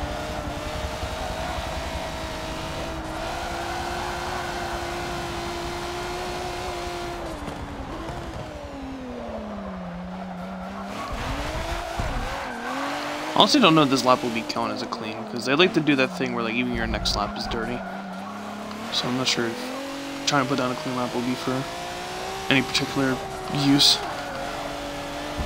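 A racing car engine roars, dropping in pitch as it slows for corners and rising again as it speeds up.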